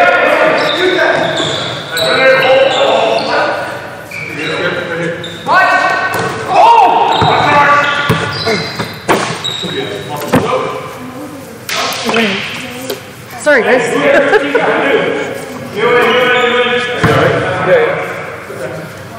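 Men shout and talk loudly in a large echoing gym.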